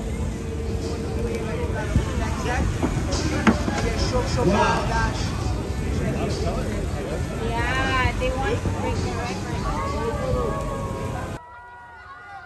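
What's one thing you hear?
A crowd cheers and chatters loudly outdoors.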